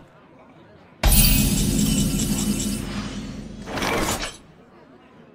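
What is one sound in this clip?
A bright chime sounds as a turn begins and rings on before stopping.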